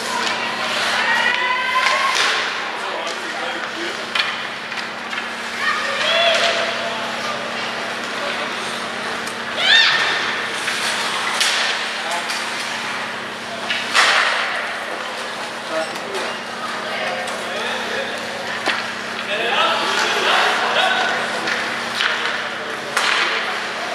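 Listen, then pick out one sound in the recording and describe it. Ice skates scrape and carve on ice.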